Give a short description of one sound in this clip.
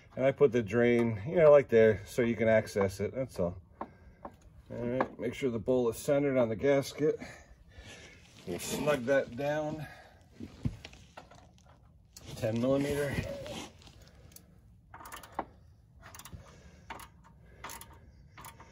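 Small plastic and metal parts click and rattle under a hand.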